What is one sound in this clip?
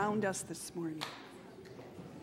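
A woman speaks loudly through a microphone in a large echoing hall.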